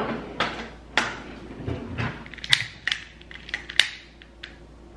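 A glass jar's lid clicks and scrapes as it is twisted.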